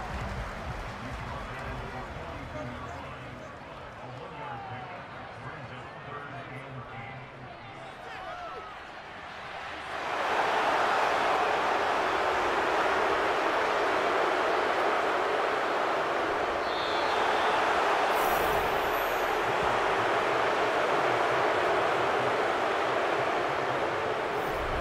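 A large stadium crowd murmurs and then roars loudly.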